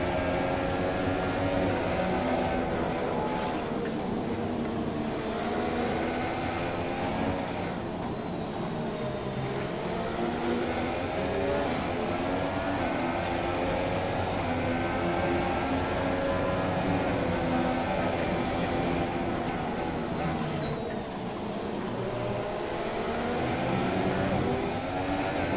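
Spray hisses under tyres on a wet track.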